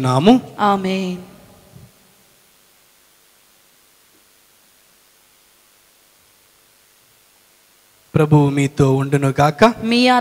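A young man sings a slow chant into a microphone.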